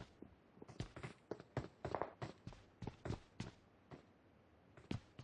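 Boots thud quickly on a wooden floor.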